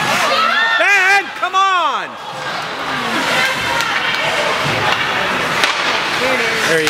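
Spectators shout and cheer in an echoing indoor ice rink.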